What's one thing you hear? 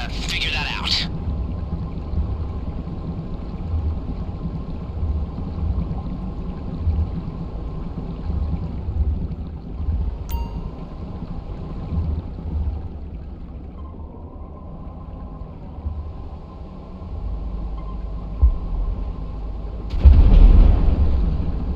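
A submarine's motor hums and churns underwater in steady low pulses.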